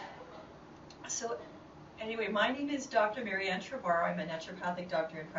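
A woman speaks calmly in a small room, heard from a short distance.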